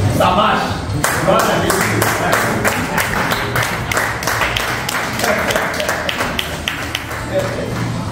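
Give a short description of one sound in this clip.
A man claps his hands in a steady rhythm.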